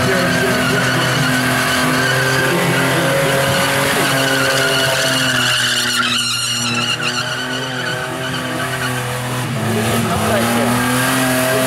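Tyres squeal as they spin against the track.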